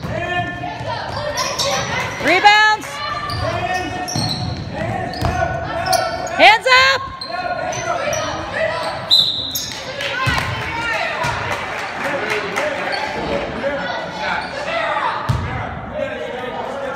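A basketball thumps on the floor and bounces.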